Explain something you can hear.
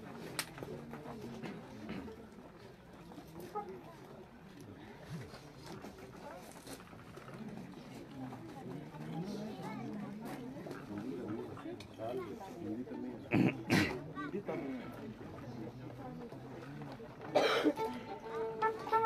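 Men and women murmur and talk quietly nearby outdoors.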